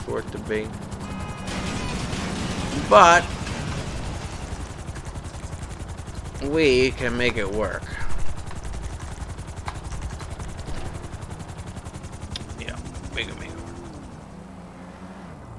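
A helicopter engine drones and its rotor thrums steadily.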